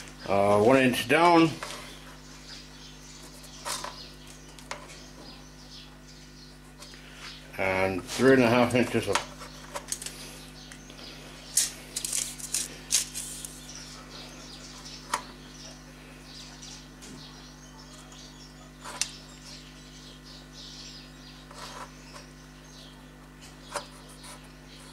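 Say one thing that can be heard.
A tape measure clicks and rattles against thin sheet metal.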